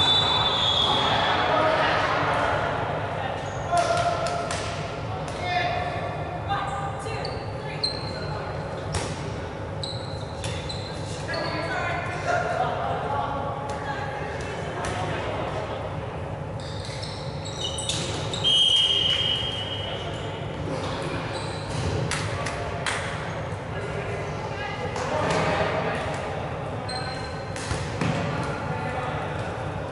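Young men shout and call out to each other during the game.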